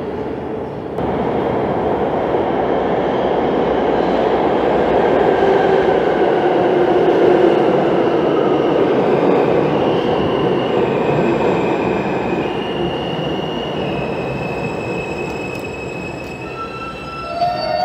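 A subway train rumbles into the station and rushes past loudly, echoing off the walls.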